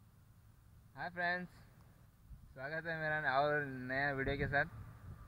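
A young man speaks casually, close to the microphone.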